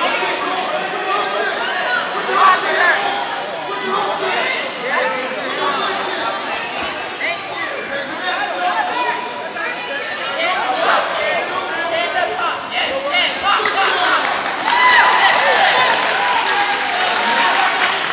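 A man shouts instructions close by.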